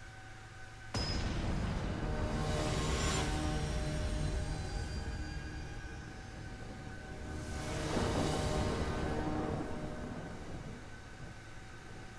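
A loud rushing game sound effect swells and fades twice.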